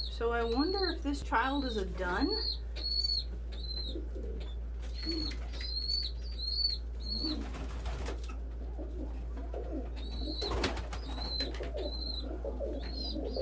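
A young bird cheeps shrilly and repeatedly, close by.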